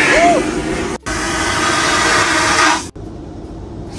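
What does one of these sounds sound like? A toilet flushes with a loud rushing whoosh.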